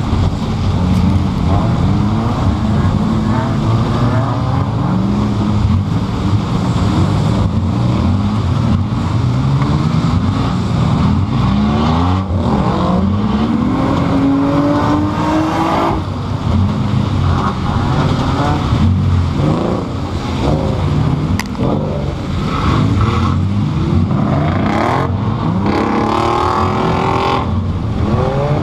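A car body rattles and bangs over bumps.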